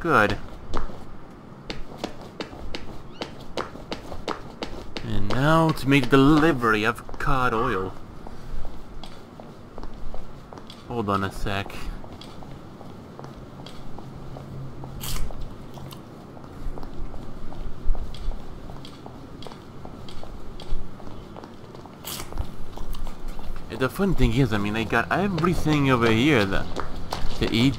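Footsteps tap steadily on cobblestones.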